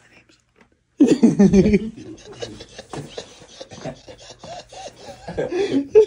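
A second young man laughs and talks with animation.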